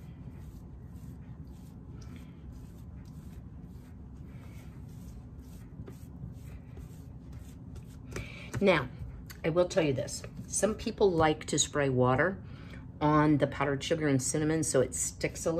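Soft dough rolls and rubs on a counter.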